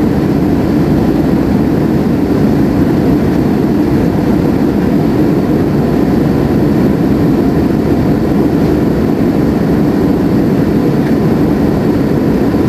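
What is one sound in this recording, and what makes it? Jet engines roar steadily inside an airliner cabin in flight.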